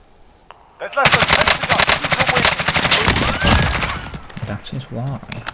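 A rifle fires rapid bursts of loud shots.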